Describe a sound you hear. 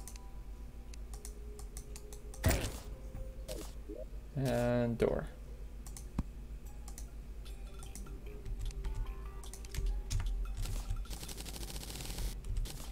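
Short electronic game sound effects pop and click.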